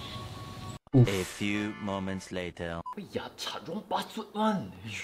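A young man speaks in a high, mocking voice, close by.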